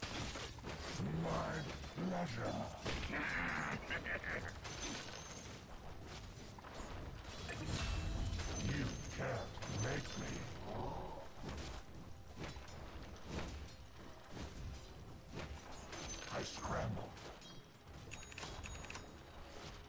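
Weapons clash and magic spells burst in a fast, busy fight.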